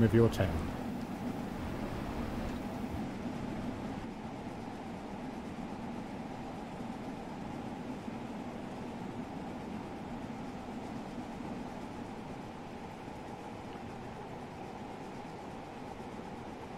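A steam train rumbles steadily along the tracks.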